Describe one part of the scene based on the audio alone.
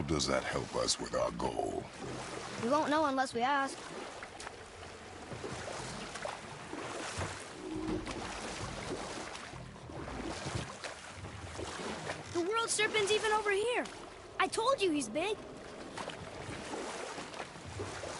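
Oars splash steadily in water as a boat is rowed.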